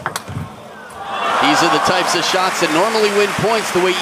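A crowd cheers and applauds loudly in a large hall.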